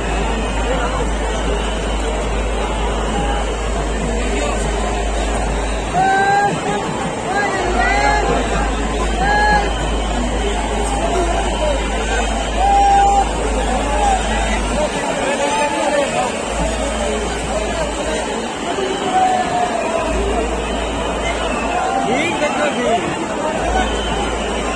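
A large crowd murmurs and calls out all around outdoors.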